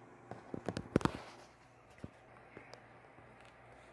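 A metal can is set down on a plastic tray with a light knock.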